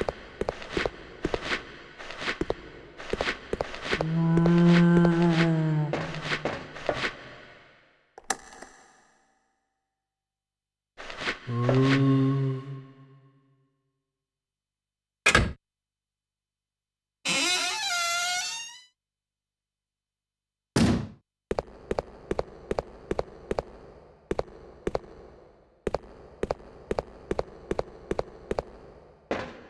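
Footsteps clank steadily on a metal walkway.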